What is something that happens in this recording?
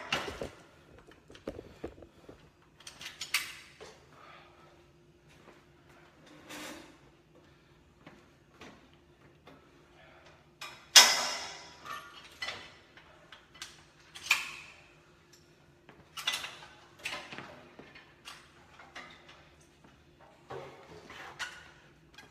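Metal gym equipment clanks and rattles in short knocks.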